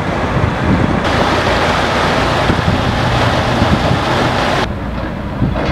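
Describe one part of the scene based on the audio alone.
Water rushes and splashes over rocks in a stream.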